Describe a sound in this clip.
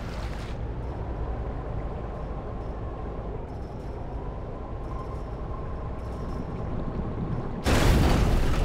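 A muffled underwater engine hums steadily.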